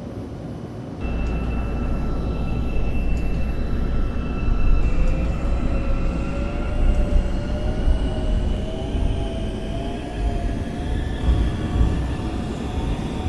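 A train rumbles along the track.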